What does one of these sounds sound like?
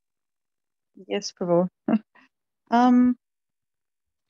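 A woman speaks briefly and warmly over an online call.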